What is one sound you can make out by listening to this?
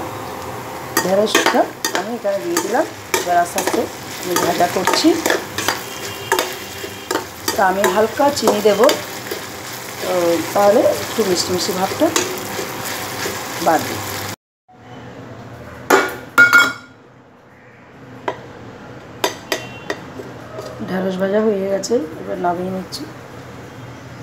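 A metal spatula scrapes and clatters against a pan.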